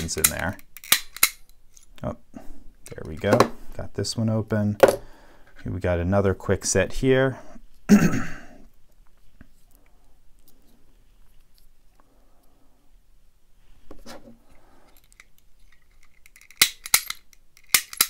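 Small metal tools click and scrape inside a lock.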